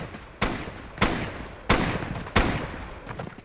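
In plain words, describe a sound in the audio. Gunshots ring out loudly, a few at a time, each echoing briefly.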